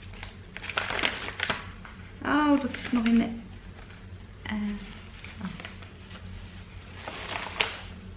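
Paper rustles as a woman handles an envelope.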